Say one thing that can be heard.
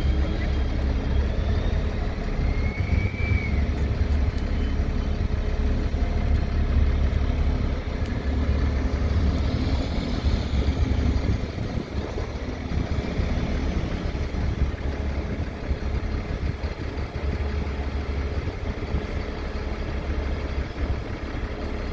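A bus engine rumbles and drives past.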